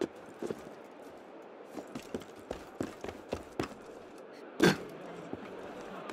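Footsteps thud on a slate roof.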